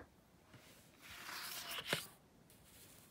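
Paper slides and rustles on a tabletop.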